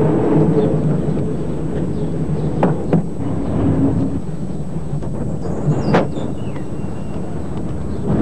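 An elderly man speaks calmly outdoors.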